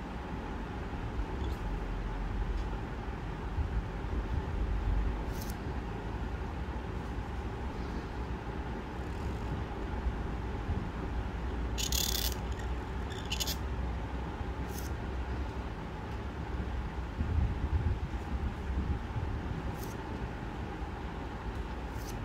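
A calligraphy pen scratches softly across paper in short strokes.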